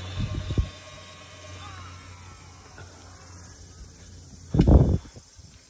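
A golf cart motor hums as the cart drives away.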